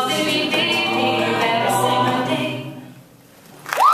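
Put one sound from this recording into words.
A choir of men and women sings together through microphones.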